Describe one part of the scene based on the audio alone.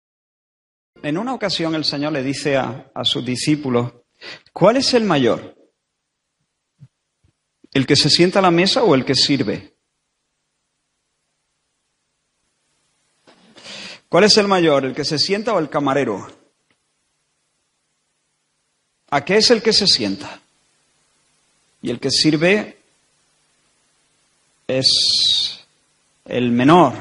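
A man speaks with animation into a microphone, in bursts with pauses.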